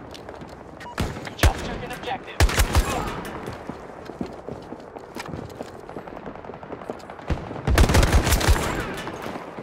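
A rifle fires in short, loud bursts.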